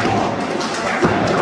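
A referee slaps the mat.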